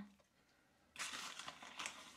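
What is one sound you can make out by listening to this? A plastic bag rustles as powder is scooped from it.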